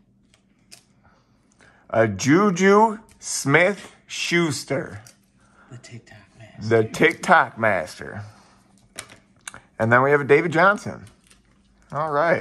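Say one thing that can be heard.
Trading cards slide and flick against each other.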